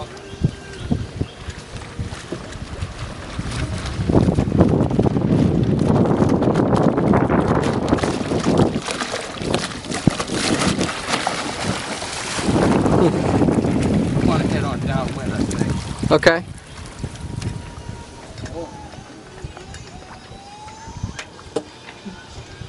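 Water splashes and slaps against the hull of a small plywood sailing dinghy.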